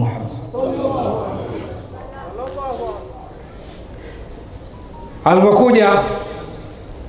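An elderly man preaches with feeling through a microphone and loudspeakers, his voice rising to a loud call.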